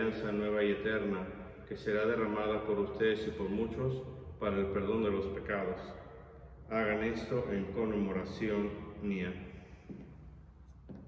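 A middle-aged man speaks calmly and steadily into a nearby microphone, in a small echoing room.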